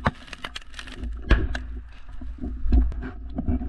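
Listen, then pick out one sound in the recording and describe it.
Footsteps thud and scuff on dry dirt close by.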